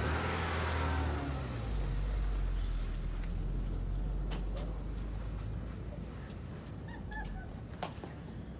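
A car engine rumbles low nearby.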